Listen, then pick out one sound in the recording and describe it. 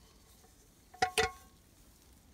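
A metal pan clanks sharply against a tree trunk.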